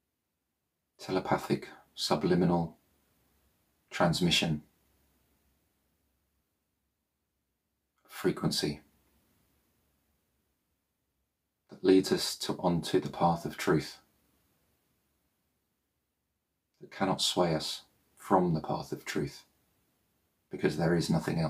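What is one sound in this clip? A man speaks calmly and slowly into a microphone, with long pauses.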